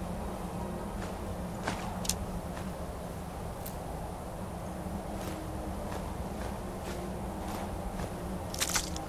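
Soft clicks tick as items are scrolled through.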